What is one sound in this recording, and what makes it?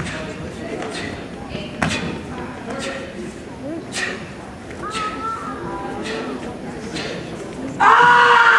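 Bare feet thump and slap on a mat in a large echoing hall.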